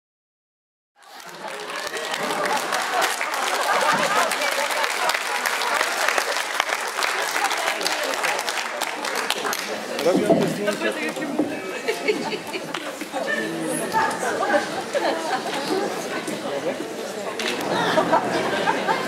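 Elderly women speak with animation through microphones in a large hall.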